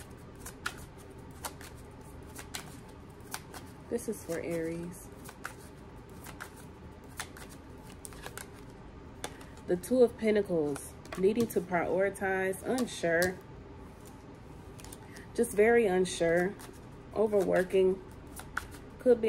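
Playing cards riffle and tap as they are shuffled.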